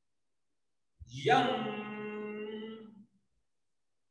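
A man chants one long, steady note over an online call.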